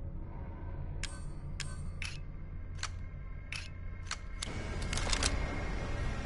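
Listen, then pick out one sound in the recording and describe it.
Short menu clicks tick several times in quick succession.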